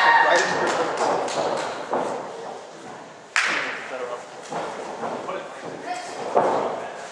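A crowd of spectators calls out and chatters in an echoing hall.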